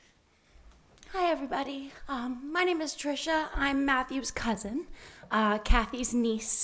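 A young woman speaks into a microphone.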